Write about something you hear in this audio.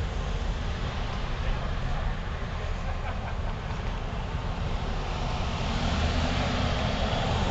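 A car drives slowly past close by.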